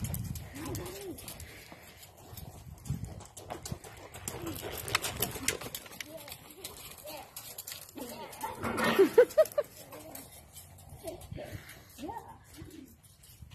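A horse's hooves thud softly on sand as it trots.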